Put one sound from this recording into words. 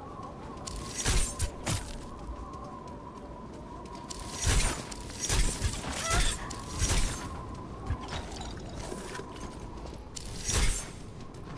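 A frost blaster fires in short hissing bursts.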